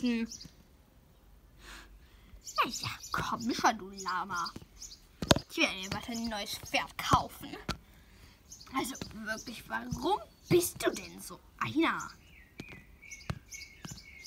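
Plastic toy hooves tap on pavement.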